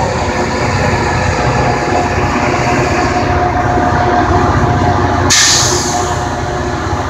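A diesel locomotive rumbles loudly nearby as it rolls along the track.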